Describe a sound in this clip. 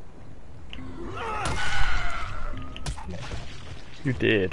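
Heavy blows thud into a zombie's body.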